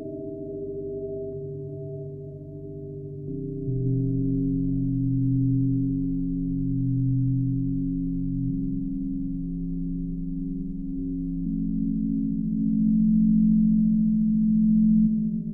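A modular synthesizer plays low, droning tones that shift pitch every few seconds.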